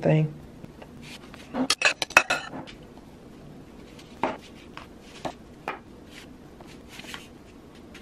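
A knife scrapes and taps against a paper plate.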